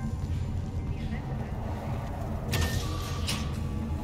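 A door slides open.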